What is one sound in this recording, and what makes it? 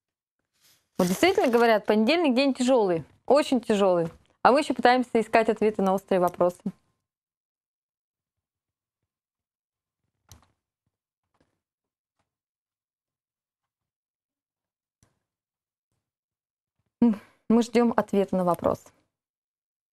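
A woman speaks clearly into a microphone, with animation.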